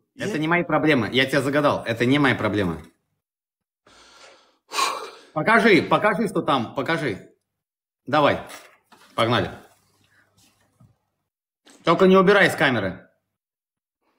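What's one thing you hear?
A man talks with animation over an online call.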